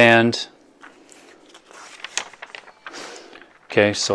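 Paper pages rustle.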